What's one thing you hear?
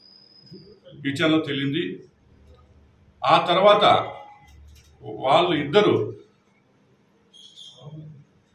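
A middle-aged man speaks calmly and formally, in short bursts with pauses.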